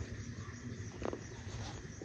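A cloth rubs and squeaks against a glass bottle.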